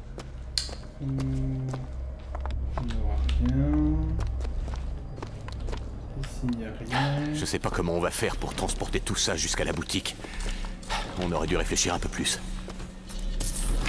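A young man talks calmly into a close microphone.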